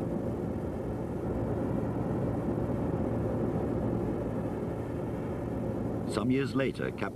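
A jet airliner's engines roar steadily as it flies.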